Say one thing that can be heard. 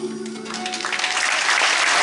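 A band plays acoustic music in a large hall.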